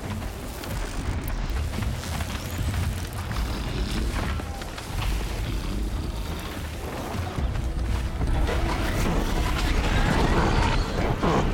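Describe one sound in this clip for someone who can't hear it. A large mechanical creature clanks and whirs nearby.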